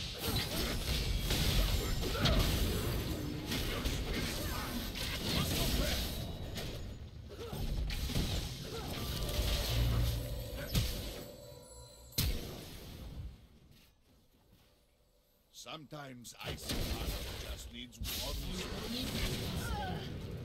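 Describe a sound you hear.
Game combat effects clash and burst in quick bursts.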